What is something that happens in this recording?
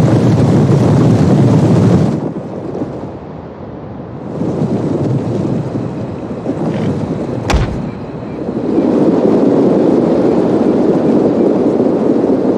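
Many soldiers march together with a low rumbling tramp of feet.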